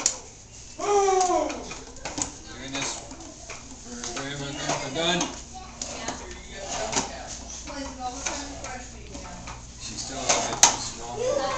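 Plastic tricycle wheels rumble and rattle across a hard tiled floor.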